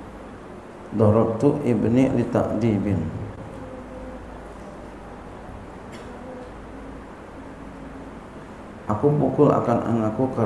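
A middle-aged man reads out in a calm chanting voice through a microphone.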